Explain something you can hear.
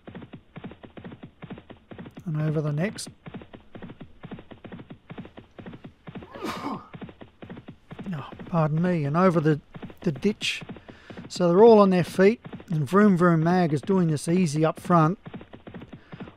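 Many horses' hooves thud quickly in a steady gallop on turf.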